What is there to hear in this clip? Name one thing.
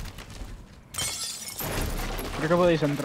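A wooden barricade splinters and breaks apart.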